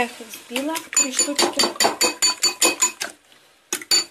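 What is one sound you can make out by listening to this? A fork clinks rapidly against a bowl.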